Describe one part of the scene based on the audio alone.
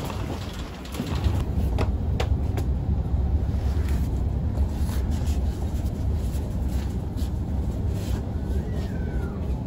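A shopping cart rattles as it rolls along a hard floor.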